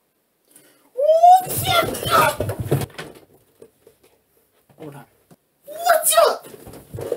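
A young man shouts loudly close by.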